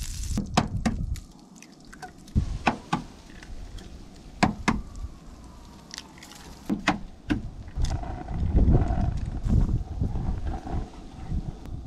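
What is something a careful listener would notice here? Eggs sizzle in a hot frying pan.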